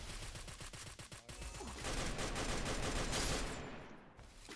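Rapid gunfire rattles from a rifle.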